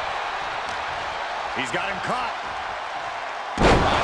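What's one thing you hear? Punches land with sharp smacks.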